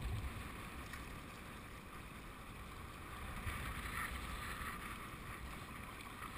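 A kayak paddle splashes in the water.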